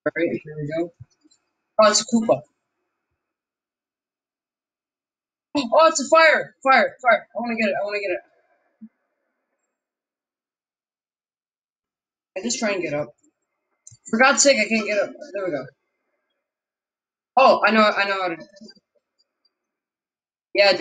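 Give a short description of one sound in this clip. A young man talks into a close microphone in short, animated bursts with pauses between.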